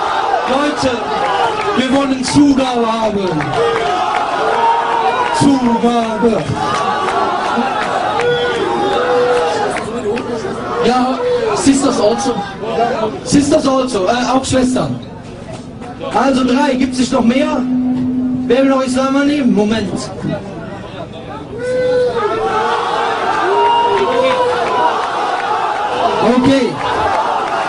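A man chants loudly through a microphone and loudspeakers, outdoors.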